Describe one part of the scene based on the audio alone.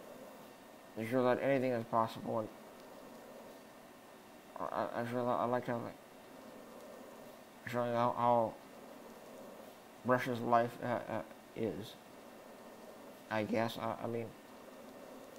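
A young man speaks calmly in short phrases into a close headset microphone, with pauses between them.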